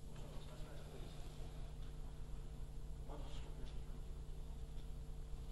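People murmur quietly in a large hall.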